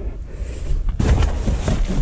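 Cardboard boxes rustle and scrape as a gloved hand shifts them.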